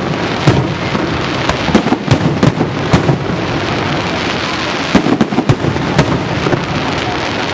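Fireworks explode overhead with loud, sharp booms.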